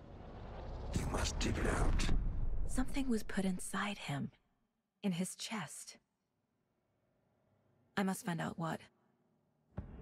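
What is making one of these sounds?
A young woman speaks quietly and tensely.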